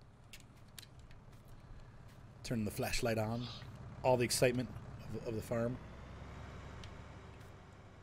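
A tractor engine idles nearby.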